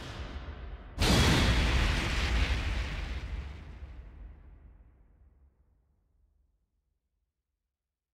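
A deep booming whoosh rings out and slowly fades.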